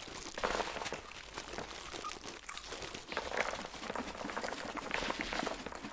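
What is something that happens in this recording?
Sweets rattle as they pour out of a bucket.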